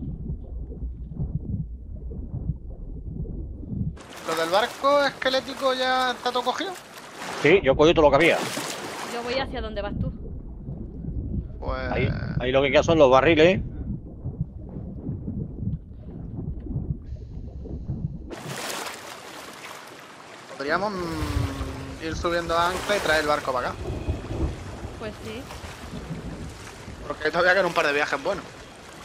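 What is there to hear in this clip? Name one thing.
Water sloshes and splashes.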